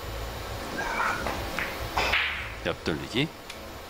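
A cue tip strikes a billiard ball with a sharp click.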